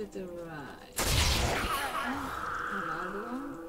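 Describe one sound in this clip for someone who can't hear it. A burst of fiery magic whooshes loudly.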